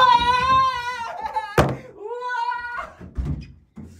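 A young man shouts and laughs excitedly nearby.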